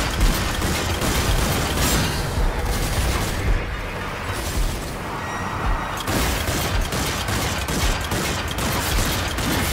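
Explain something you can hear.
A sniper rifle fires single shots.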